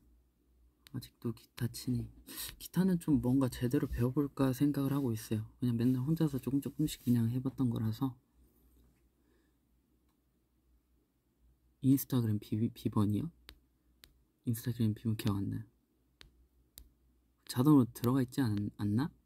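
A young man speaks calmly and close up, in short bursts with pauses.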